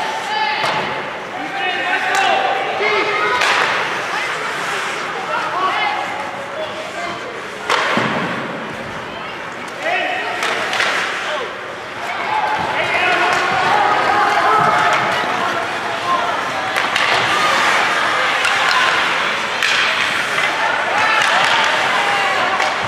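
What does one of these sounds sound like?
Spectators shout and cheer in an echoing rink.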